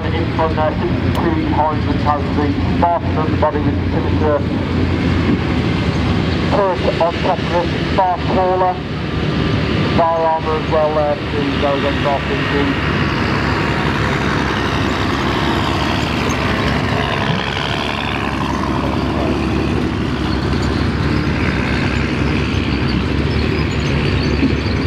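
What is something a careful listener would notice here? Metal tracks clatter and squeal over rough ground.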